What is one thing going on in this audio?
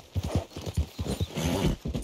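Horse hooves thud on wooden planks.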